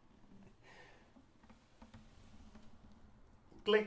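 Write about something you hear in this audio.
A man laughs softly close by.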